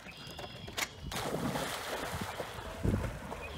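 A dog splashes into water.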